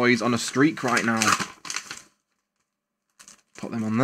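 Paper packets rustle and crinkle in hands.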